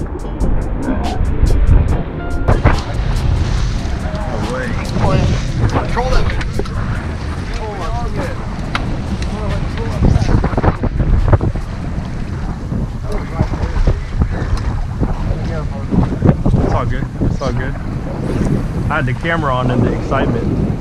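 Wind blows hard across open water outdoors.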